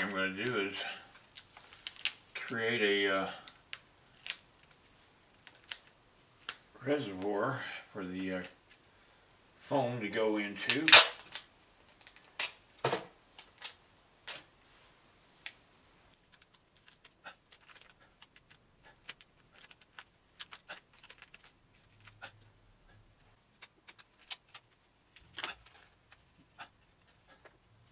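Paper tape rustles and crinkles.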